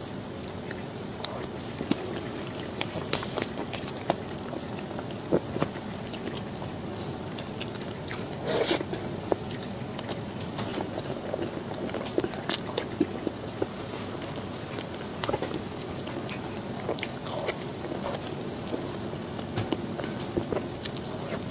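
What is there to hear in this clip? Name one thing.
A young woman chews soft food with wet, smacking sounds close to a microphone.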